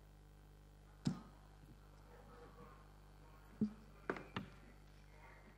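A plastic bottle knocks against a table.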